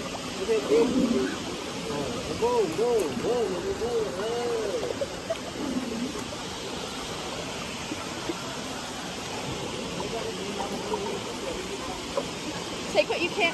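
Shallow river water flows and splashes steadily.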